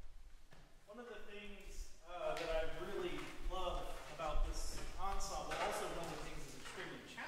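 A man speaks to an audience in an echoing hall.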